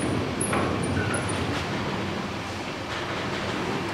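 Metal chains clink and rattle against a trailer hitch.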